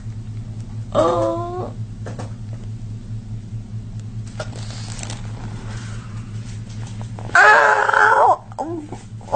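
A woman cries out in pain close by.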